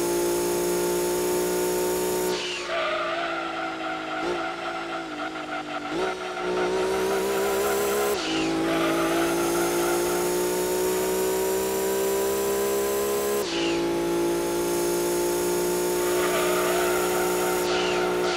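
A racing car engine screams at high revs, dropping in pitch as the car slows for a bend and rising again as it speeds up.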